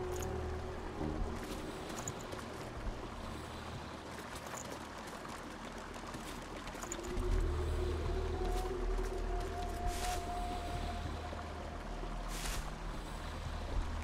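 Torch flames crackle softly.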